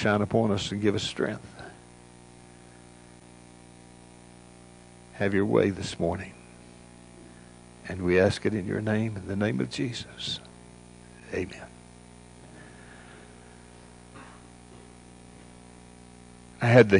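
An elderly man speaks calmly through a microphone in a large echoing hall, with long pauses.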